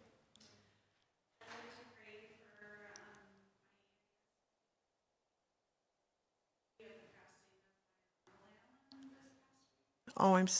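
An elderly woman speaks calmly into a microphone, with pauses, in a room with some echo.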